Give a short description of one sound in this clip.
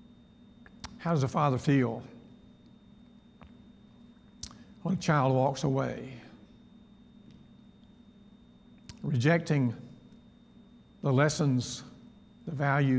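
An elderly man speaks slowly and calmly into a microphone, with long pauses, in a large echoing room.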